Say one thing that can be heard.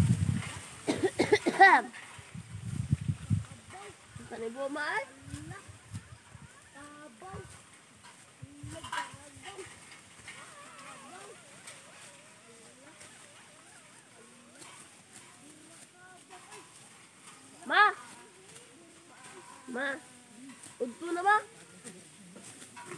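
Women talk and call out to each other at a distance, outdoors.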